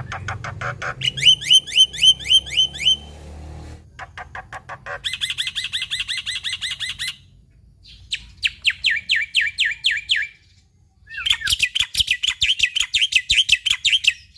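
A caged bird sings in quick, repeated bursts of sharp chirps and whistles.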